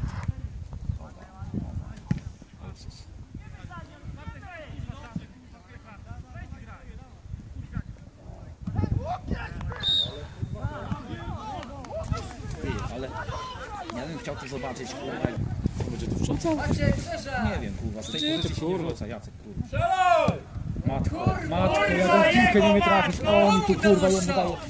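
Young men shout and call to each other across an open field, at a distance.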